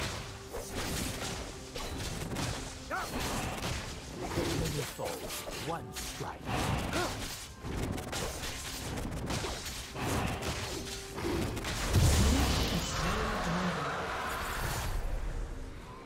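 Game spell and attack effects whoosh and crack in quick succession.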